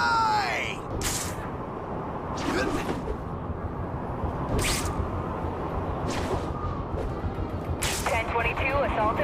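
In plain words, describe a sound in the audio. Short sharp whooshes snap out every second or two.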